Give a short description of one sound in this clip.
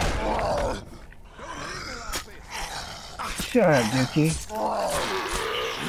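A machete chops into flesh.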